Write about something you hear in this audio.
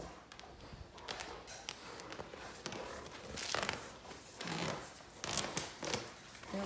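Fabric rustles and scrapes as two dogs pull on it.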